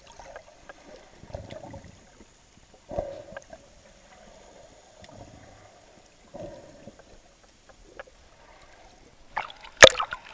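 Water gurgles and thumps, muffled underwater.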